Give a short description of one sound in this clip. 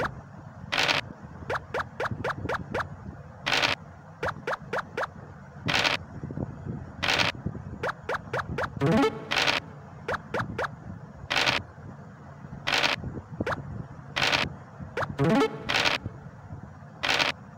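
A dice rattles as it rolls.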